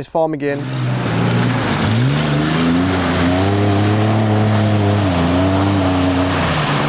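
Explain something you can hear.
An engine revs and roars as a vehicle drives off.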